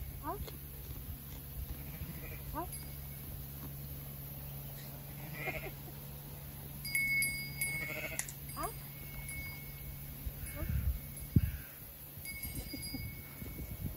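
A sheep tears and munches grass close by.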